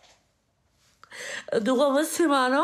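A young woman speaks with animation close to a phone microphone.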